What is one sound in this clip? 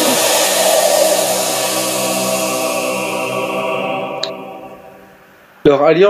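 A magical glow hums with a shimmering tone and slowly fades away.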